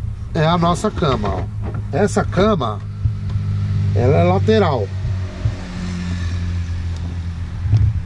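Wooden slats knock and rattle as a bench seat is lifted.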